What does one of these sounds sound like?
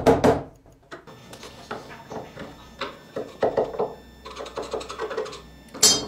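A chisel scrapes and pares wood by hand.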